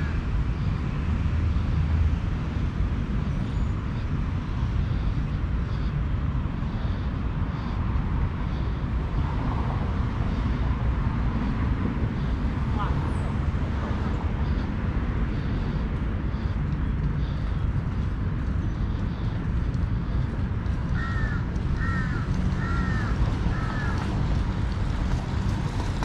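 Wind blows outdoors with a steady low rumble.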